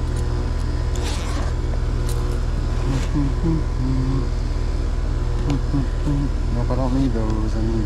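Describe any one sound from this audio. Tools clink and rattle in a bag.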